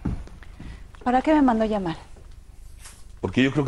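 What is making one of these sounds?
A woman speaks sharply and with agitation nearby.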